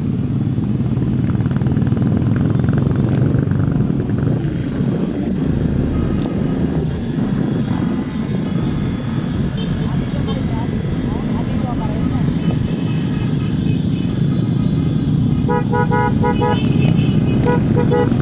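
Several motorcycles ride along nearby.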